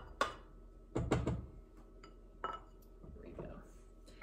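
Ingredients clink and rattle in a glass bowl.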